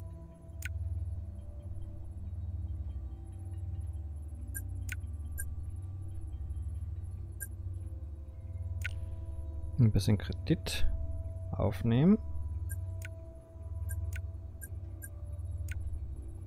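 Short, sharp menu clicks tick now and then.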